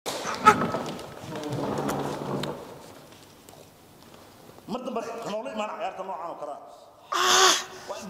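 A man speaks loudly and angrily close by.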